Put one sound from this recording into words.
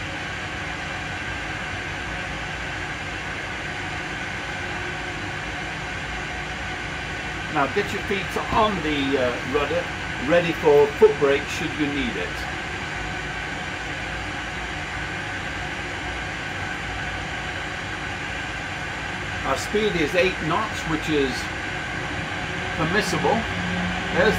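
Cockpit equipment hums steadily.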